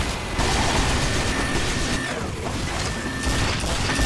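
A minigun spins and fires in rapid bursts.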